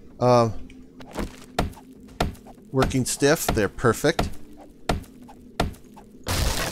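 An axe thuds repeatedly against a wooden crate.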